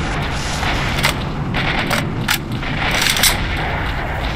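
A gun's metal parts click and clack as it is reloaded.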